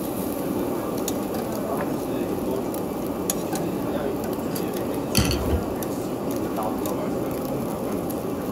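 Meat sizzles on a charcoal grill.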